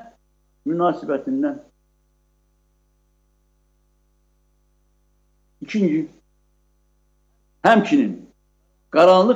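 An elderly man speaks calmly over an online call, in short phrases with long pauses.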